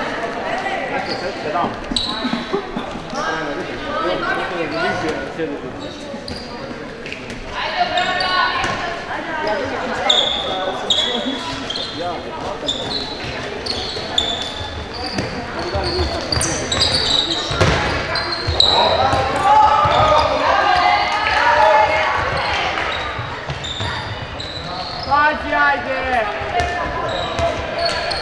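A handball bounces on the court with dull thuds.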